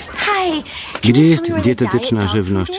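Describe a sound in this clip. A woman speaks with surprise, close by.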